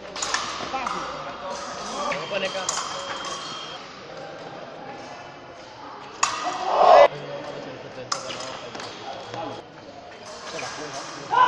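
Fencing blades clink and clash in a large echoing hall.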